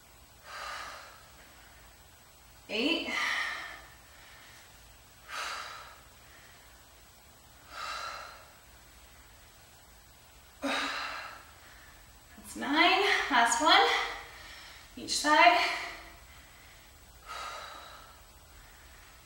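A young woman breathes out hard with each lift.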